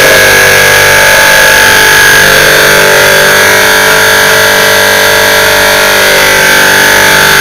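An electric motor runs with a loud, steady whine.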